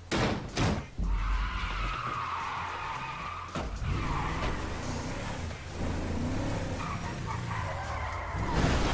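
A truck engine runs and revs as the truck drives off.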